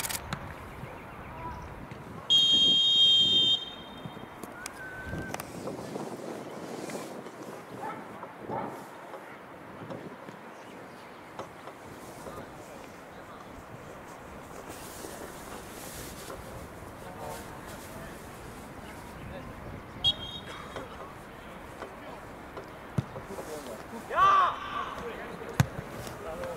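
Players call out to each other in the distance, outdoors.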